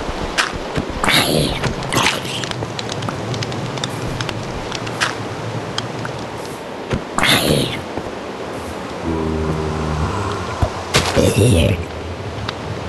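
A zombie lets out sharp, harsh grunts as it is struck.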